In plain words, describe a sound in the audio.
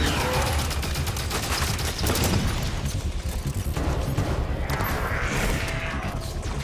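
Heavy explosions rumble low and deep.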